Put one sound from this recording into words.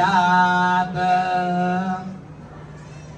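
A man chants in a steady, sung voice.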